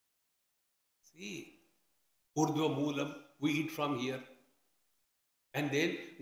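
An elderly man speaks calmly into a nearby microphone, in short phrases with pauses.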